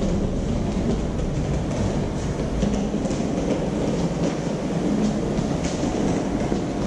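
Small wheels rumble steadily across a hard floor.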